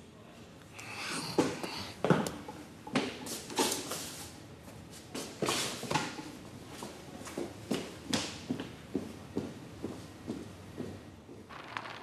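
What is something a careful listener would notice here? Glasses clink and knock on a hard counter.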